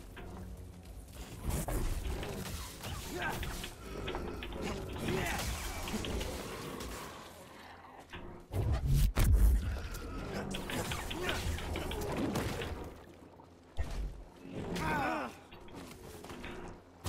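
Sword blows clang and thud in a fight.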